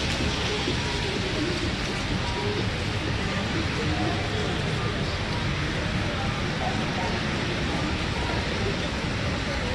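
A crowd of people chatters outdoors in the street.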